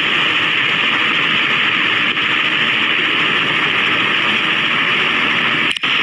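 A helicopter's rotor whirs.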